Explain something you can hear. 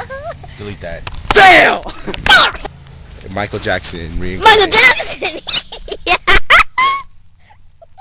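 A young boy laughs loudly close by.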